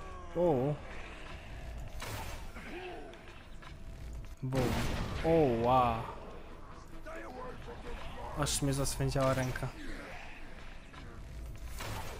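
A bowstring snaps as arrows fly and strike.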